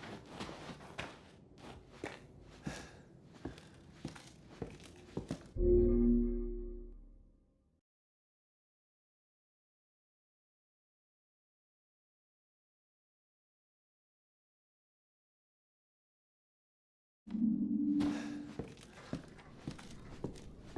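Slow footsteps thud on a creaky wooden floor.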